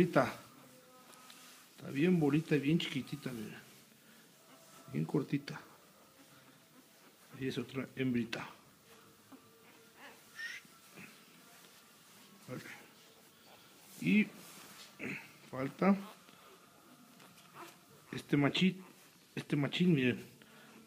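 A young puppy whines and squeals in short bursts, close by.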